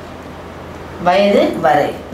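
A woman speaks clearly and with animation.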